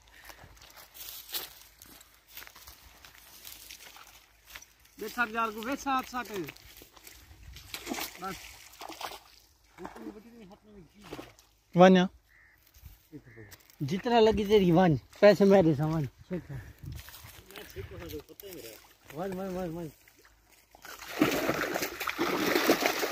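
Water splashes as a man wades and pulls a net.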